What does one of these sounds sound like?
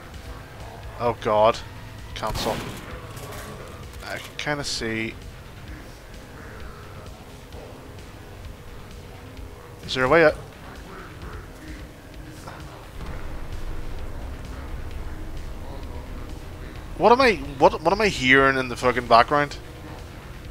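A man talks into a close microphone with animation, in short bursts.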